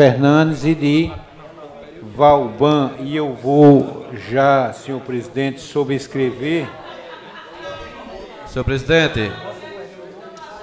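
A middle-aged man speaks loudly and with animation through a microphone, in a room with some echo.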